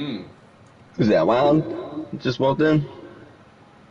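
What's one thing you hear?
A man speaks loudly with animation nearby.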